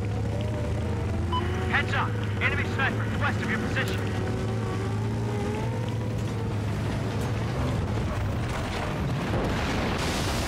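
A helicopter engine hums steadily throughout.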